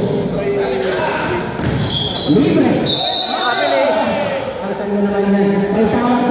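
Men shout and call out to each other in an echoing hall.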